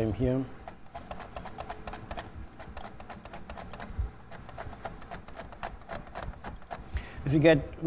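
A blade slices rapidly through vegetables with quick, even strokes.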